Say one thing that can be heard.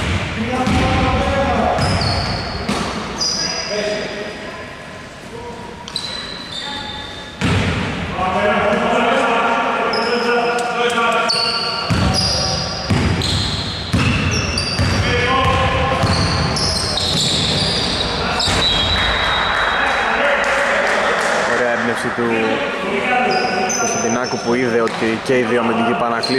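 Men call out and talk to each other across an echoing hall.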